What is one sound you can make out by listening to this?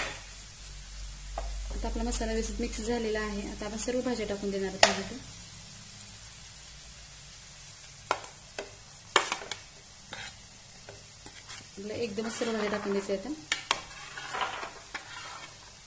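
Food sizzles softly in a pan.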